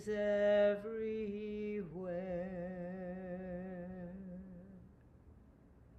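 A man sings a slow, drawn-out chant over an online call.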